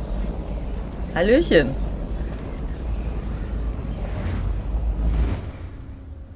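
A magical portal rumbles and crackles with energy.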